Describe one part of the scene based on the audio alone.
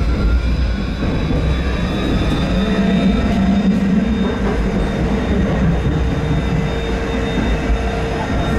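A tram's motor whines with a rising pitch as it speeds up.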